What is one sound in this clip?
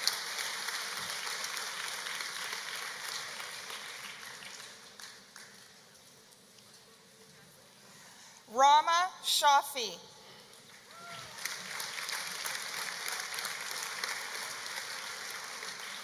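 An audience claps and cheers.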